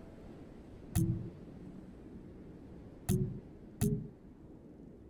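Deep whooshing thuds sound as game menus open.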